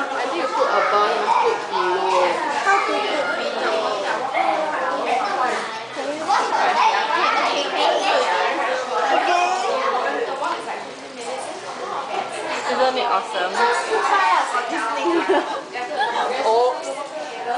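Young women chat and laugh together close by.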